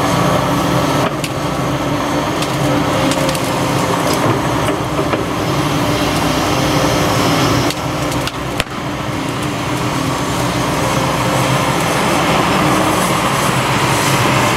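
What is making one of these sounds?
Branches and debris crack and crunch in an excavator's grab.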